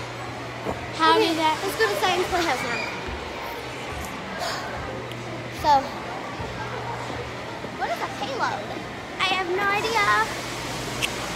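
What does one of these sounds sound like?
A second young girl speaks and exclaims close by.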